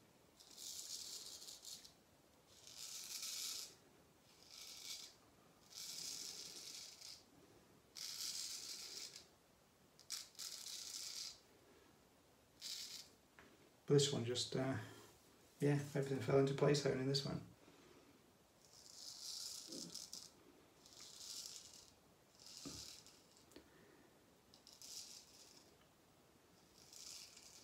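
A razor scrapes through stubble in short, repeated strokes.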